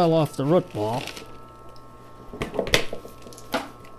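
Soil crumbles and rustles as a plant is pulled from a pot.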